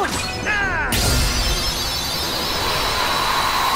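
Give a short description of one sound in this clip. A magic blast bursts with a loud whoosh.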